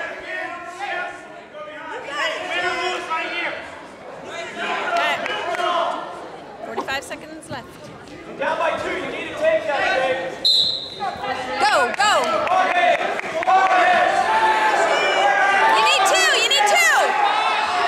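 Spectators shout and cheer nearby in an echoing gym.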